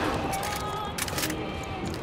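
A pistol's magazine clicks out during a reload.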